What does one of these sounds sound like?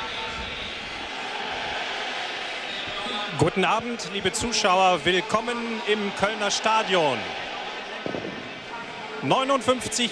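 A large crowd roars and cheers outdoors.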